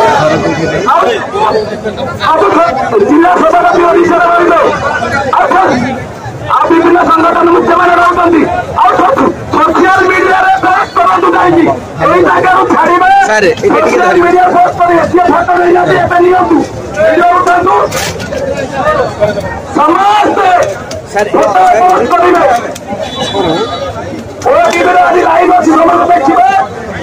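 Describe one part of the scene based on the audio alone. A man speaks forcefully through a loudspeaker outdoors.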